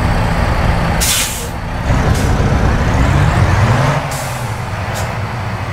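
Air brakes hiss sharply in short bursts.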